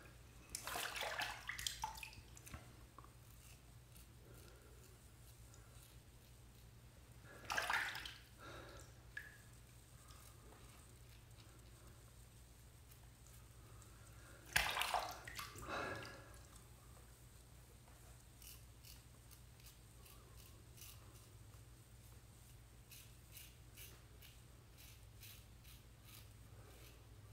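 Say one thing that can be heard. A razor scrapes across stubble in short, rasping strokes.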